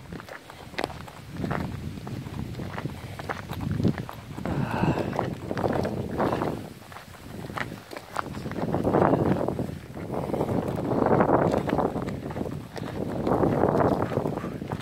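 Wind blows in strong gusts outdoors, buffeting loudly.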